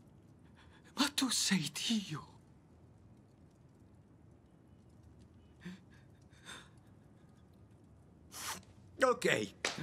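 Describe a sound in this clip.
A younger man speaks quietly, close by.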